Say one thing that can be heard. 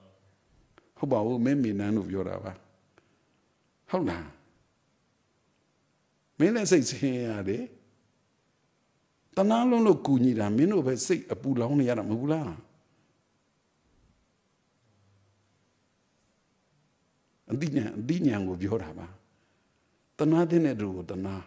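A middle-aged man speaks calmly into a microphone, in short phrases with pauses.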